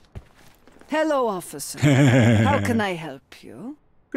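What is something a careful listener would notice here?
An elderly woman speaks politely.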